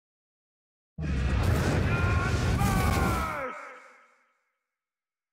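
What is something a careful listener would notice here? Flames roar in a sudden burst of fire.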